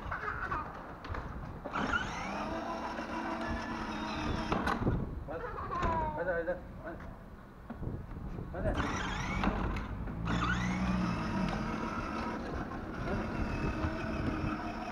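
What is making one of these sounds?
Small plastic wheels roll over asphalt outdoors.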